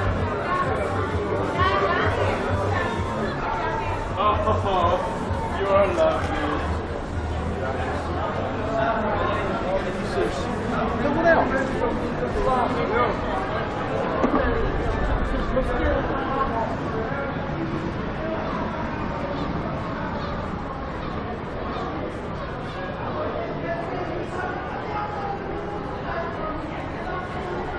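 Voices of passers-by murmur along a street outdoors.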